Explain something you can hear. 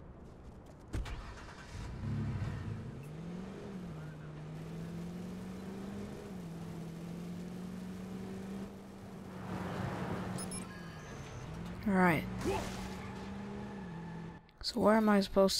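A truck engine revs up and then hums steadily as the truck drives.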